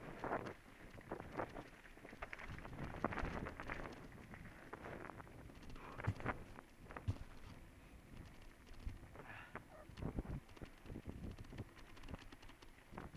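Bicycle tyres crunch and rattle over a rough gravel trail.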